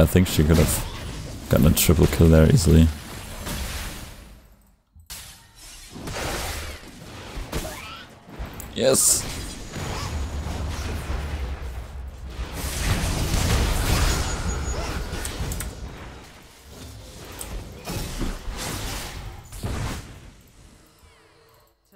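Game effects whoosh and clash during a fight.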